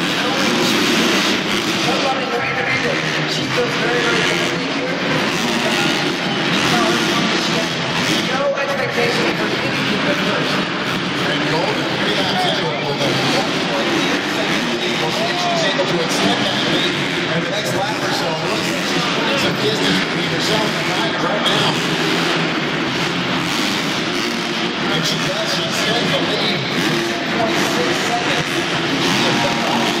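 Motocross bikes rev and roar around a dirt track.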